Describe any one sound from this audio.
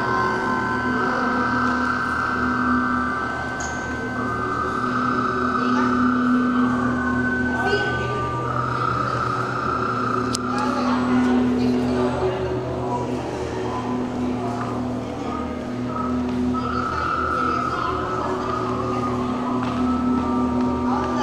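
An electric guitar plays sustained, droning notes through an amplifier in a large echoing room.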